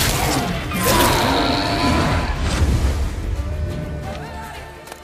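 A sword swishes and clashes in a loud fight.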